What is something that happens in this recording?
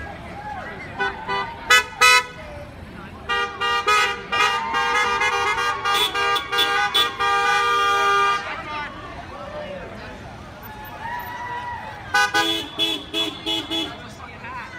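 Car horns honk repeatedly.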